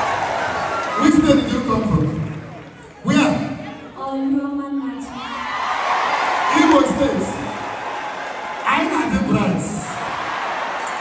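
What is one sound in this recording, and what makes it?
A man speaks loudly with animation through a microphone and loudspeakers.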